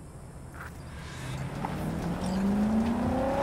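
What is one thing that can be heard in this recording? A car engine starts and revs up, rising in pitch.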